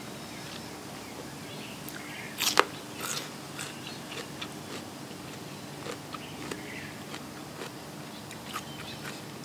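A woman chews food noisily close to a microphone.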